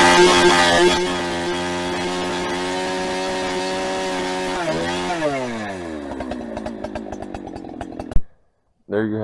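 A chainsaw engine drops to a lower idle and then winds down to a stop.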